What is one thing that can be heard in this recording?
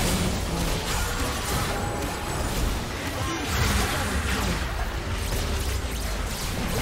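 Magic spells burst and crackle amid the clashing of a busy fantasy battle.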